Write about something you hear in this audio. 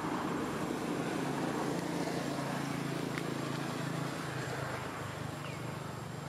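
A monkey munches juicy watermelon close by.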